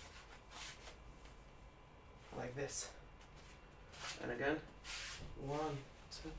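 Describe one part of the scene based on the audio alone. Bare feet shuffle and thump on a floor.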